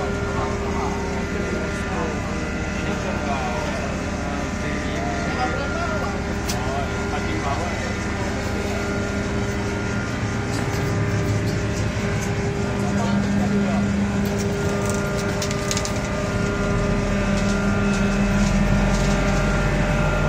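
Men talk loudly nearby over the engine.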